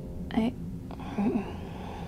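A young woman talks.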